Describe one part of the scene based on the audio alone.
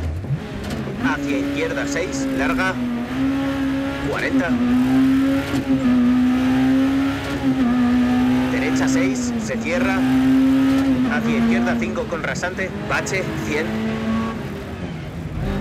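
A rally car engine revs hard and rises in pitch as it shifts up through the gears.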